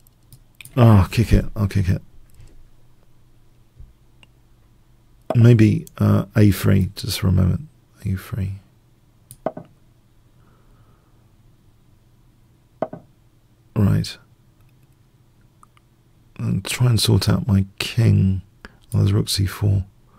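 A middle-aged man talks with animation into a close microphone, in bursts with pauses.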